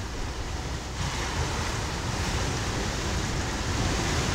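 Sea water washes and laps gently outdoors.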